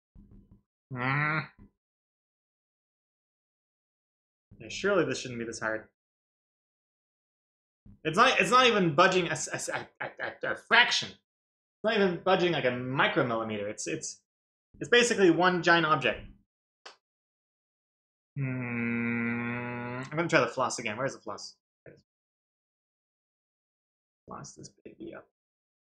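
A man talks with animation, close to the microphone.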